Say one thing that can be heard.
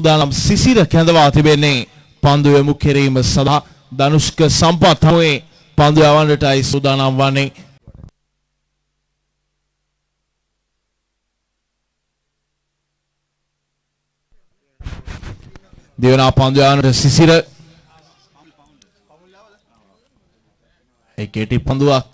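A man commentates with animation through a microphone.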